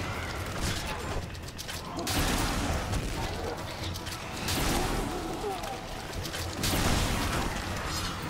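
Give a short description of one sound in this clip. Gunfire bursts out in loud, rapid shots.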